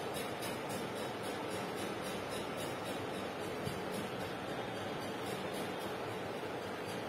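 A marker squeaks and scratches on a whiteboard.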